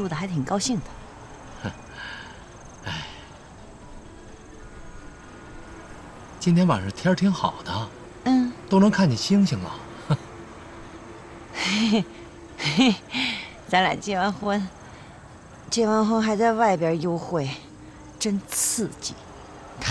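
A middle-aged woman speaks softly and cheerfully close by.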